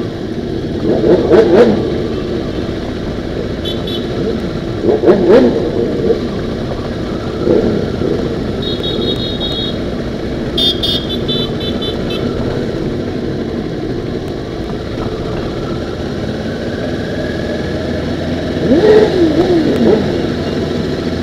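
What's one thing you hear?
A motorcycle engine revs loudly in short bursts.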